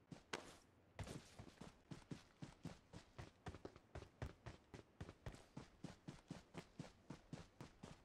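Footsteps run quickly over grass and dirt.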